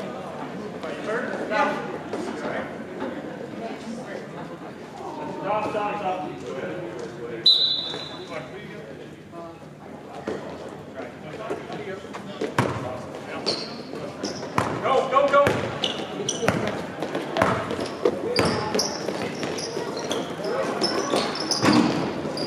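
A crowd of spectators talks and calls out.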